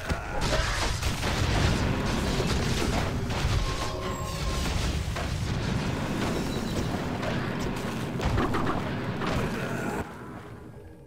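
Fantasy battle sound effects clash, crackle and boom loudly.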